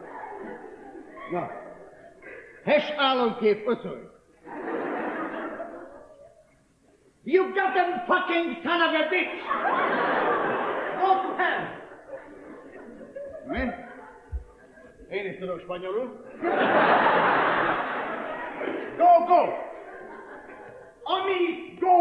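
A middle-aged man speaks loudly and with animation.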